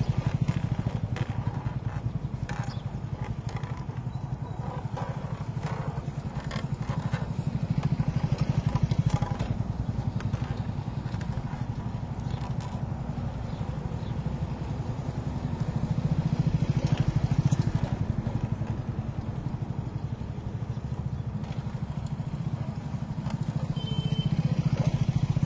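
A wooden oil press grinds and creaks steadily in a stone mortar.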